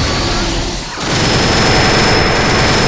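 Rapid blasts and crackling impacts burst loudly from a video game fight.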